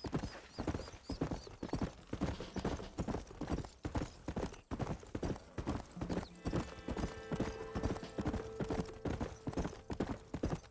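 Horse hooves thud rapidly on a dirt trail at a gallop.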